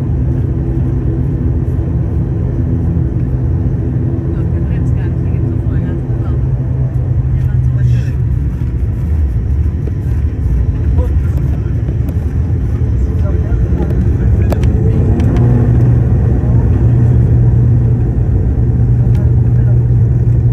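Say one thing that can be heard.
A propeller plane's engines drone loudly from inside the cabin.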